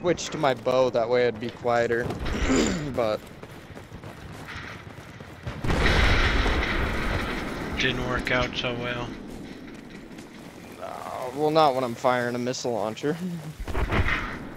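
A young man talks casually into a headset microphone, close by.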